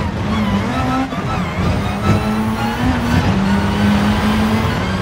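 A racing car engine roars steadily, shifting up through the gears.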